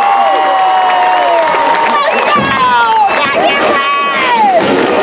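Drums beat in a marching band.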